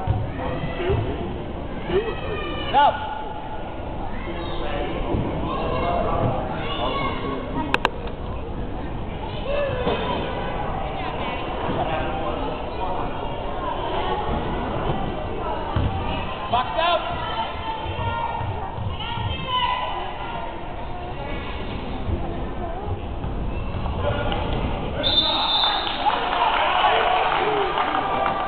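A crowd of spectators chatters and calls out.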